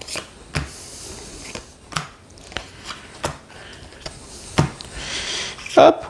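Cards are laid down on a table with soft taps.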